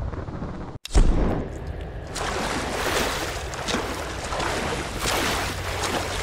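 Water splashes as someone wades through it.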